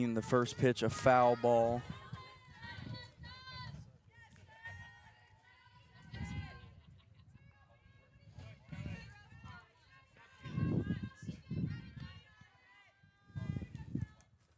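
Young women shout and call out across an open outdoor field.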